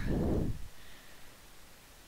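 A fiery creature breathes with a low, rushing whoosh.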